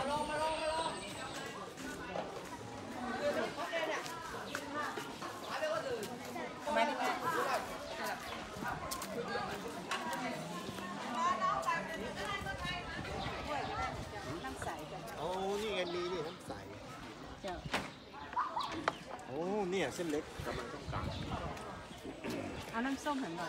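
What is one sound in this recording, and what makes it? Voices of people and children chatter nearby outdoors.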